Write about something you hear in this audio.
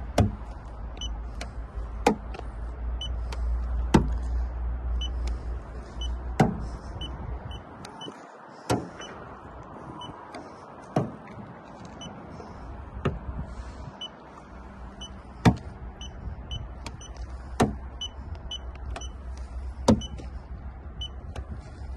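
An electronic meter beeps briefly, again and again.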